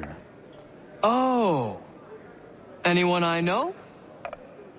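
A man answers with a questioning, rising voice.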